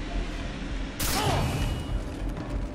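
A rifle fires a single loud shot indoors.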